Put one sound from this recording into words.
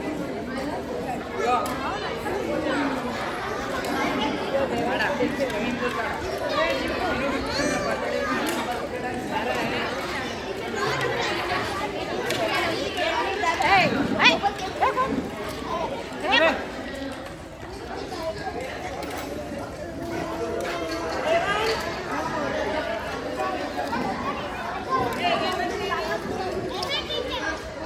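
Many children and adults chatter at once outdoors.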